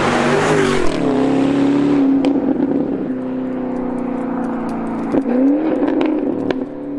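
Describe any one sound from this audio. A sports car engine revs and fades as the car drives away.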